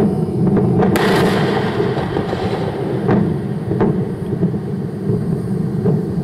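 Sharp bangs and cracks of explosions burst now and then.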